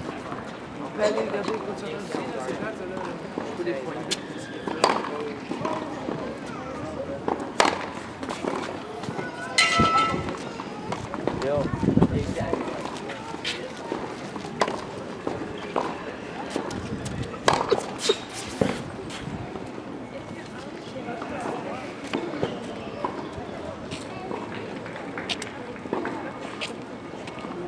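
A tennis racket strikes a ball with sharp pops, outdoors.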